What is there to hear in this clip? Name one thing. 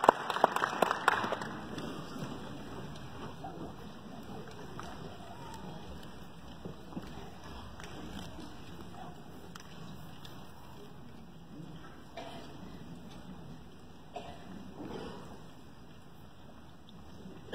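An elderly man speaks calmly through a loudspeaker in a large echoing hall.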